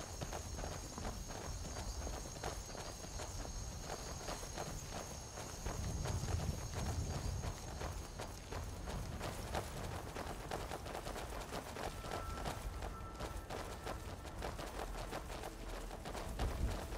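Footsteps crunch over stony ground and through dry grass.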